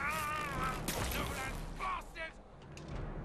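A magic spell crackles and bursts with a sharp hiss.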